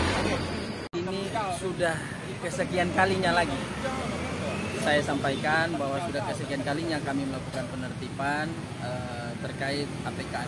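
A man speaks calmly into a nearby microphone outdoors.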